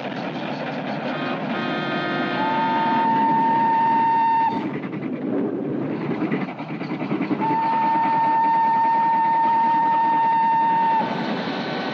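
A steam locomotive chugs and puffs.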